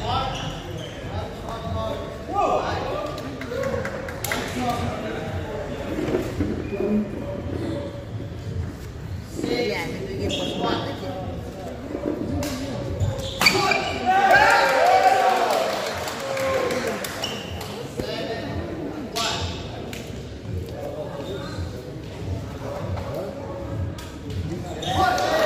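A crowd of people talk in the background.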